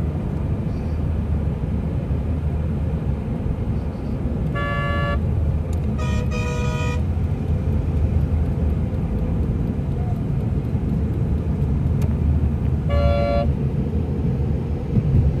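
Traffic rumbles steadily on a busy road.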